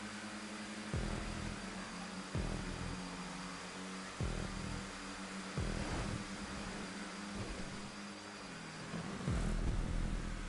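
A car engine drones and shifts gear with sudden jumps in pitch.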